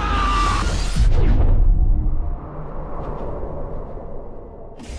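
Glass-like debris shatters in a loud crash.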